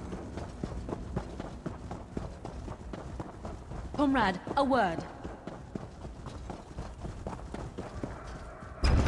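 Footsteps thud quickly on stone paving.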